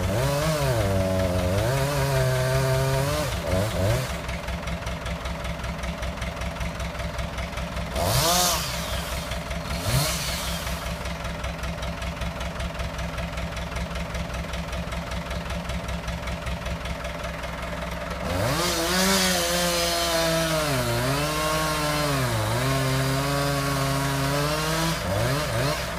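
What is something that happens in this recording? A hydraulic crane whines, its pitch rising and falling as the crane moves.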